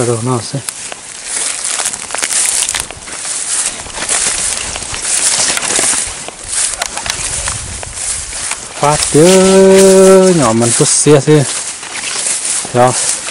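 Dry leaves rustle as people walk through tall plants.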